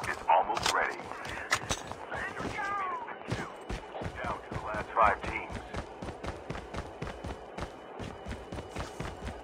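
Quick footsteps thud steadily on the ground as a runner jogs.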